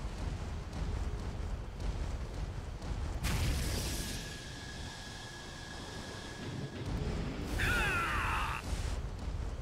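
Heavy metal footsteps thud steadily.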